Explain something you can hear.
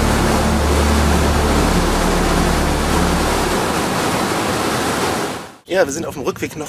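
Water rushes and churns in a boat's wake.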